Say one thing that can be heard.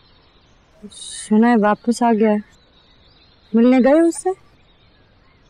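A young woman speaks softly and tensely nearby.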